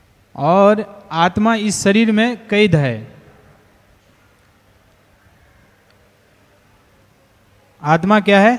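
A man speaks into a microphone in a melodious, chanting voice.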